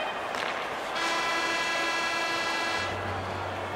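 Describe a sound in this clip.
A loud horn blares to end the period.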